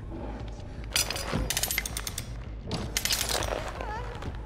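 A metal trap is pried open and set with creaks and clanks.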